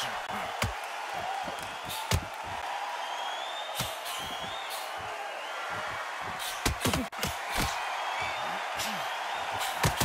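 A crowd murmurs and cheers steadily.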